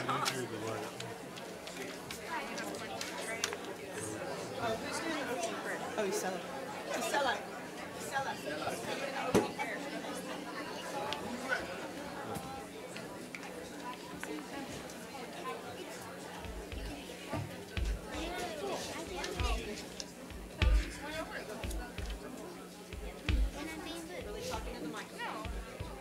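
A crowd of men and women chat and greet one another in a large echoing hall.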